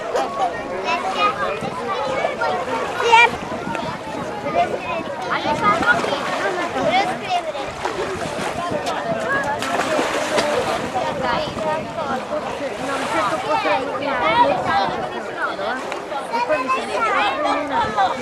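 Water splashes softly around swimmers.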